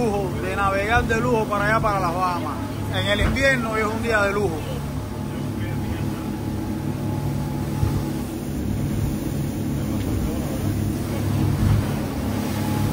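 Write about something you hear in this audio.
Water rushes and splashes along a moving boat's hull.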